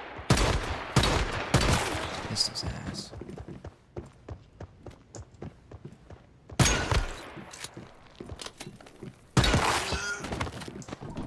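Gunshots fire in loud bursts with echoing ringing.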